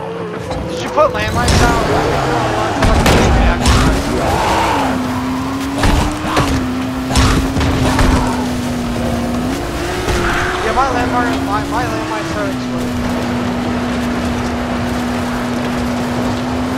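A buggy engine hums and revs, rising and falling in pitch.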